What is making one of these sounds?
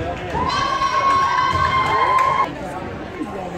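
A scoreboard buzzer blares loudly and steadily in an echoing gym.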